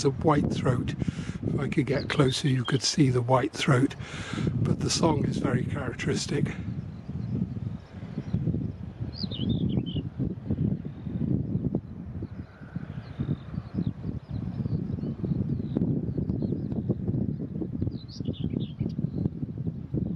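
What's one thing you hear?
A small bird chirps and sings nearby.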